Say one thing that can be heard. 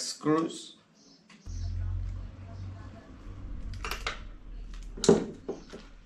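Pliers click and snap on small metal parts.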